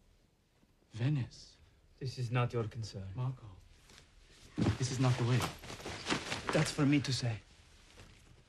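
A man speaks curtly and firmly, close by.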